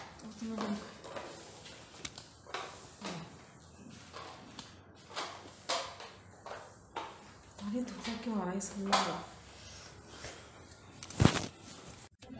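A broom sweeps across a floor.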